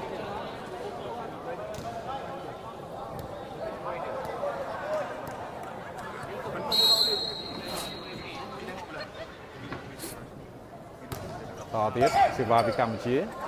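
A large crowd murmurs and chatters in a big echoing hall.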